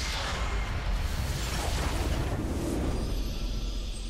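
A triumphant fanfare swells up.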